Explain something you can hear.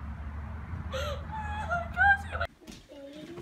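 Women talk with excitement nearby.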